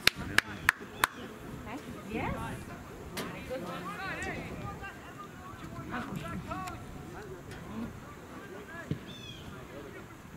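Young men shout to each other across an open field outdoors.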